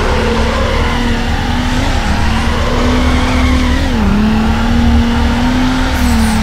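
A racing car's engine drones steadily and dips in pitch as it shifts gears.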